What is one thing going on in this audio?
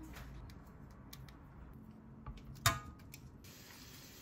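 Meat sizzles and crackles in a hot frying pan.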